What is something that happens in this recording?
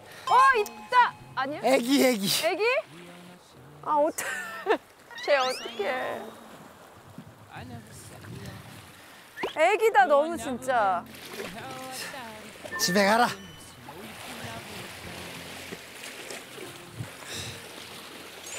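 Waves wash against rocks.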